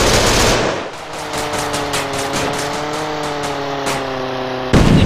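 A plane's machine guns fire in rapid bursts.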